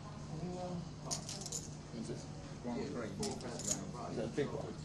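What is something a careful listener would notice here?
Poker chips click and clatter together on a felt table.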